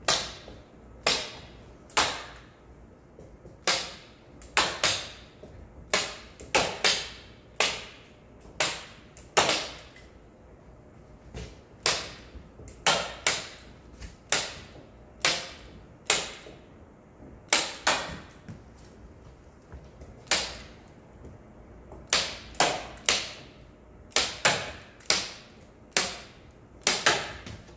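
A tool taps sharply on a board again and again.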